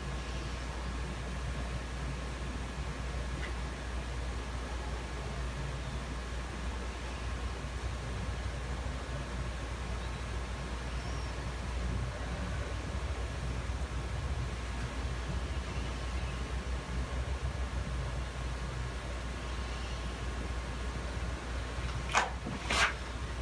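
A young woman breathes in and out slowly and deeply.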